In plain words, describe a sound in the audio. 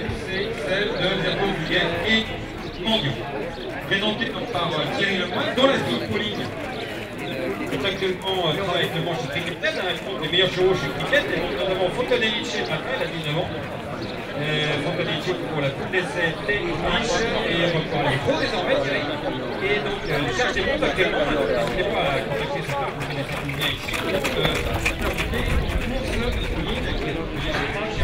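Footsteps crunch on gravel as a man jogs.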